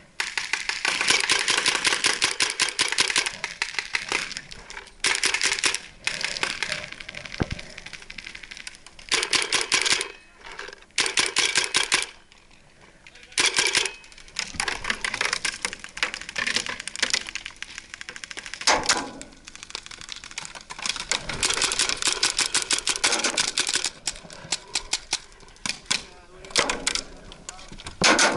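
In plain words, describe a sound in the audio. A paintball marker fires in rapid bursts.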